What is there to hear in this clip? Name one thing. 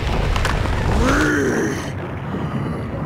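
A creature lets out a short, rising growl.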